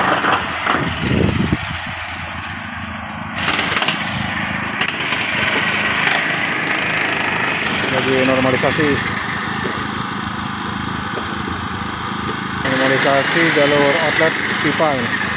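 A generator engine hums steadily nearby.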